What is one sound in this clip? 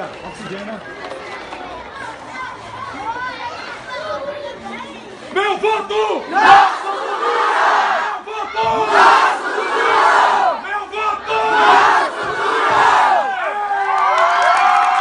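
A crowd of young people chant and sing together outdoors.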